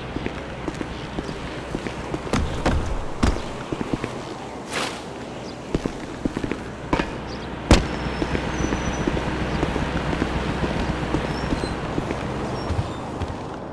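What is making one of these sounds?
City traffic hums outdoors.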